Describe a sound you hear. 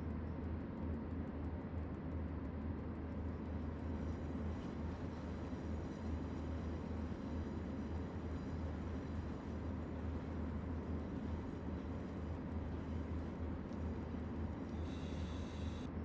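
An electric locomotive engine hums steadily as the train rolls along the rails.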